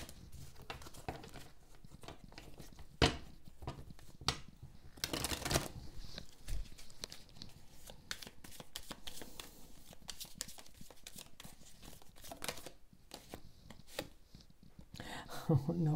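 Playing cards shuffle and riffle with soft papery flicks.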